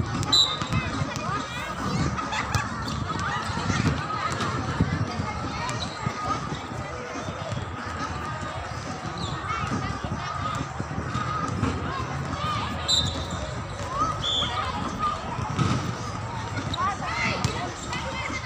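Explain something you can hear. A volleyball thumps off players' forearms and hands.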